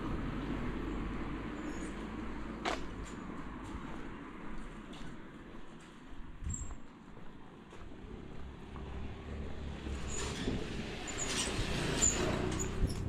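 Footsteps walk along a paved street.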